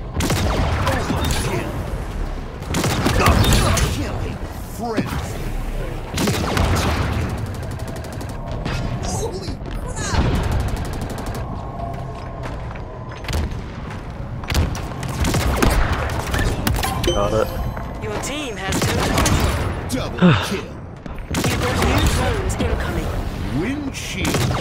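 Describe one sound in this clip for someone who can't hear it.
Gunfire and explosions boom in bursts.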